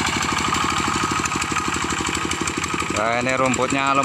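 A small diesel engine chugs and putters steadily up close.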